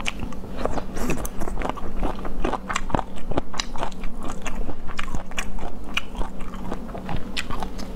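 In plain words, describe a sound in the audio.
Chopsticks clink against a plate.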